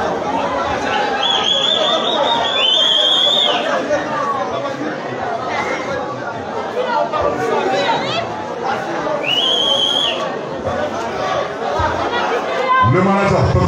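A crowd of young people chatters and calls out in an echoing hall.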